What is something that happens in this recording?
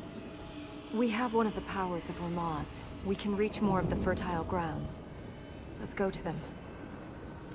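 A young woman speaks calmly and clearly.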